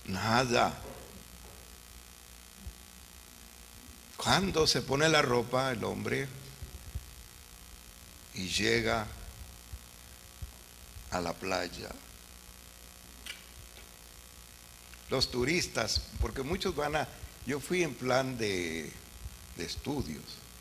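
An elderly man preaches with animation through a microphone, in bursts with pauses.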